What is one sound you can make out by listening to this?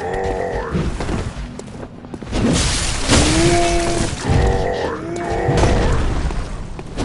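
A large beast roars and snarls.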